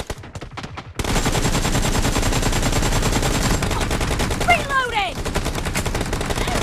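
Rapid rifle gunfire rattles.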